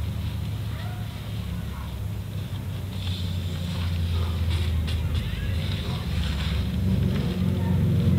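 Metal engine parts clink and scrape as hands work on them.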